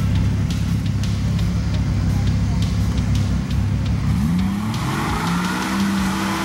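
An off-road vehicle's engine rumbles and revs as it climbs a muddy track.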